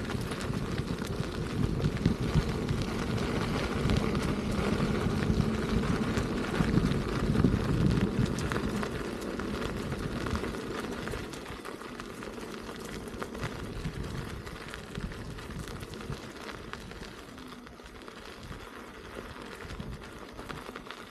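Wheels roll and crunch over a rough paved path.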